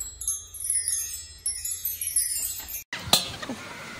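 Metal wind chimes jingle and ring.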